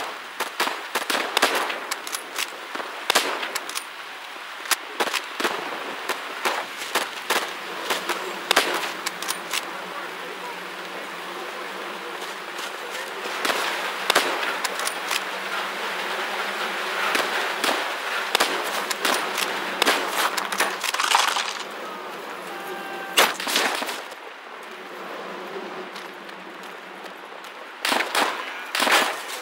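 Rifle shots crack loudly, again and again.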